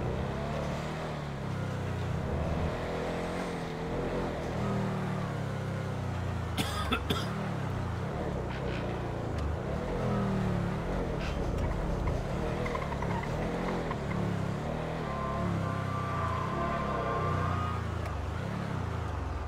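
A car engine hums and revs as the car drives along.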